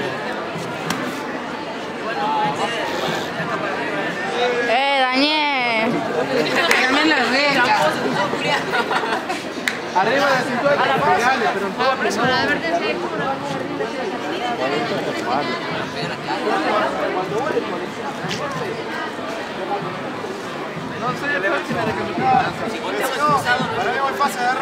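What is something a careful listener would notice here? A crowd of men and women chatters outdoors nearby.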